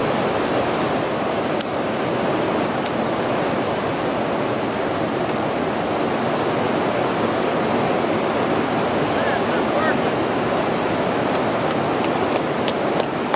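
River rapids roar and churn loudly and steadily.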